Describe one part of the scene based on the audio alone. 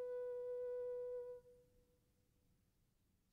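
A single piano note rings steadily, then is damped and fades away.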